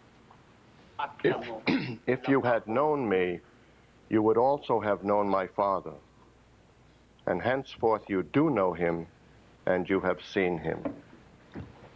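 A man reads out in a slow, steady voice.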